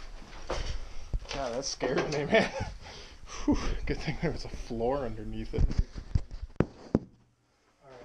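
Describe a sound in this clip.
A bearded man speaks close up, with animation.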